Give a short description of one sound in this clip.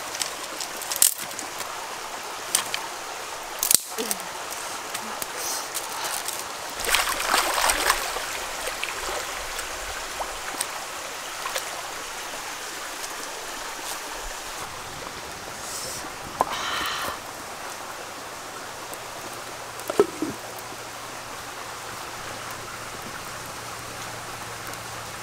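Twigs crackle and pop in a burning fire.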